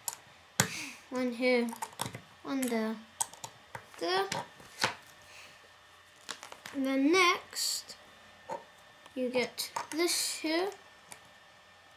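Plastic toy bricks click and clack together.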